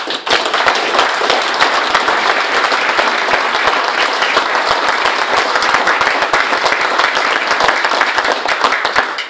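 A large crowd applauds loudly in a room with some echo.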